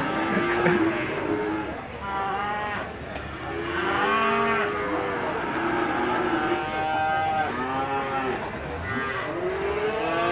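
Several men talk outdoors nearby.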